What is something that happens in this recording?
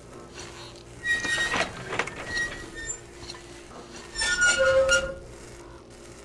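A rusty metal valve wheel squeaks and grinds as it turns.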